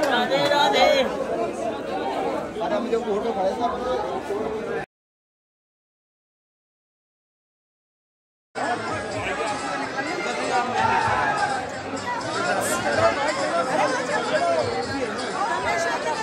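A crowd of men and women chatter and talk nearby.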